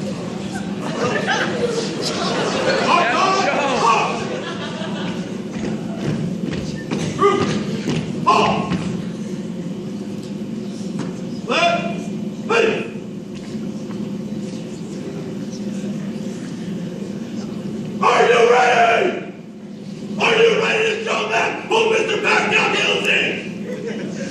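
A man shouts commands loudly in a large echoing hall.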